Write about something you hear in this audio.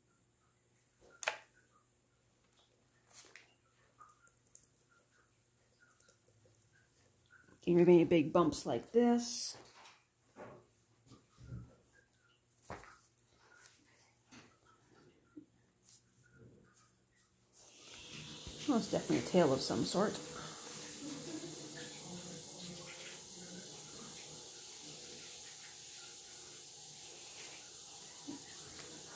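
Hands softly pat and rub damp clay.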